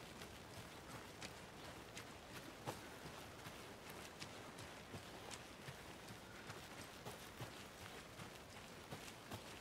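Footsteps crunch quickly on a dirt path.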